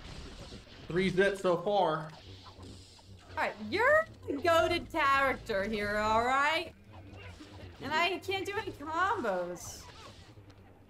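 A young woman exclaims and squeals excitedly close to a microphone.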